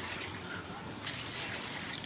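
Water pours from a bowl into a basin.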